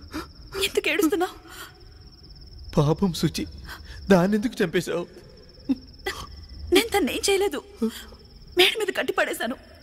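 A young woman speaks tearfully and softly, close by.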